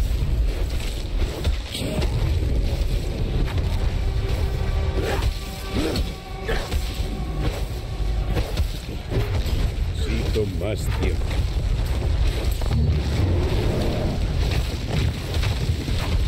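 Weapons clash and strike monsters in a game battle.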